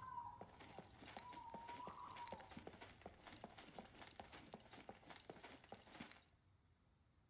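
Footsteps crunch at a steady walking pace.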